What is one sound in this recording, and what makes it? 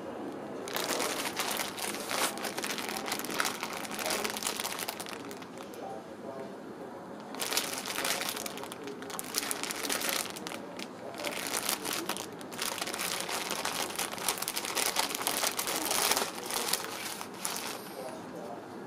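Thin plastic wrap crinkles in a person's hands.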